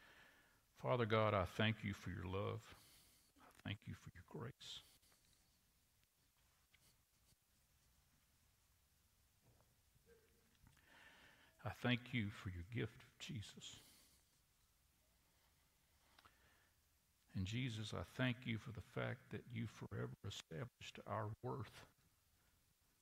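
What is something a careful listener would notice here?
An elderly man speaks slowly and calmly through a microphone in an echoing hall.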